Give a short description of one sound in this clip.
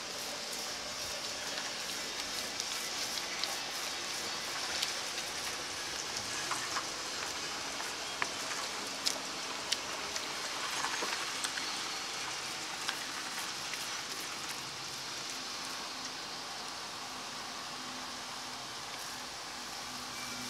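A paint roller rolls wetly over a metal surface.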